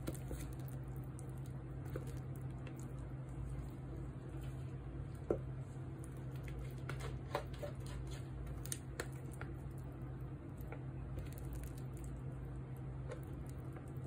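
Thick soap batter plops and squelches softly into a mould.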